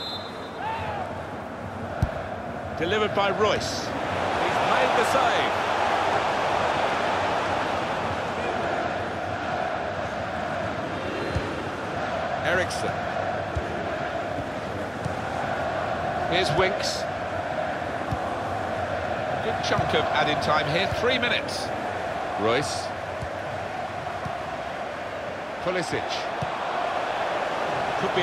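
A large crowd cheers and chants steadily in a big stadium.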